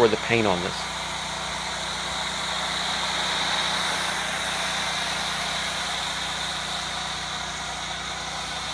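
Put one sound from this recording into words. A foam sprayer hisses steadily, spraying foam onto a car.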